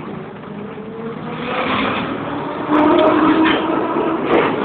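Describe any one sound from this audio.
Steel wheels squeal and screech against the rails.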